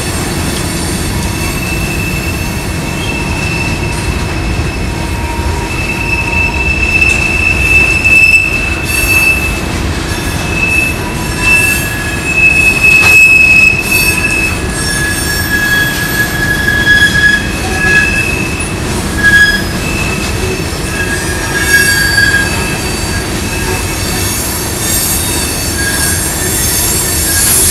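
A crossing bell rings.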